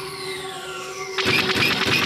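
A small spacecraft fires rapid laser shots.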